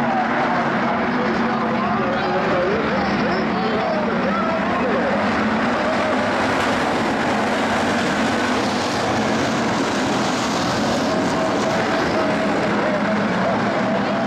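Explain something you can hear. Tyres grind and spray over a dirt track.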